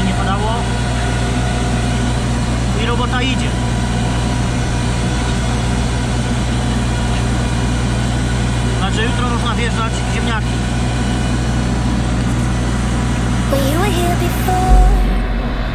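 A tractor engine drones steadily close by.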